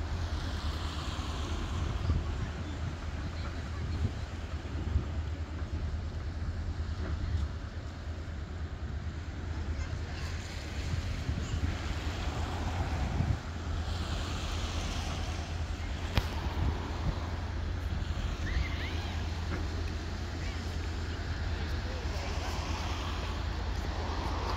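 Wind blows hard against the microphone outdoors.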